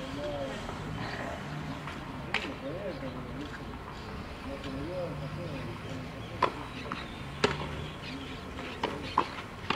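A drag brush scrapes over a clay court.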